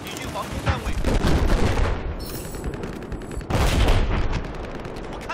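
Explosions rumble in the distance.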